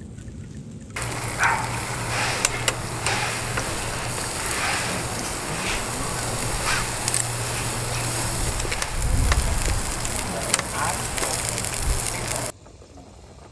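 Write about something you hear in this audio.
Meat sizzles loudly on a hot grill.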